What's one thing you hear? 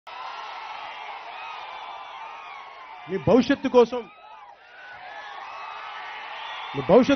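A large crowd cheers and screams outdoors.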